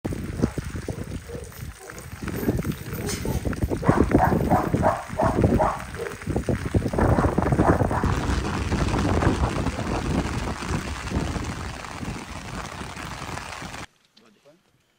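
Wind buffets the microphone loudly outdoors.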